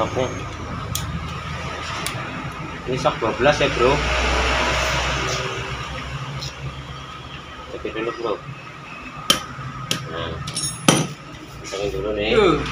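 Metal tools clink and tap against a metal housing.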